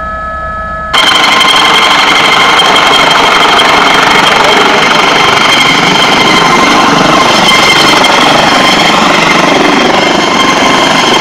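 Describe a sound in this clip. A helicopter's rotor roars loudly close by.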